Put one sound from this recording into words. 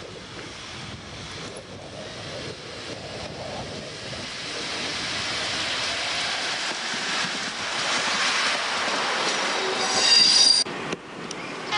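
A train rolls past on the tracks, its rumble swelling as it comes close.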